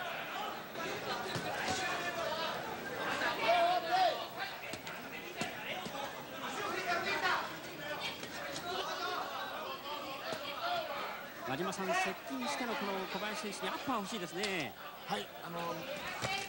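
Boxing gloves thud against bodies.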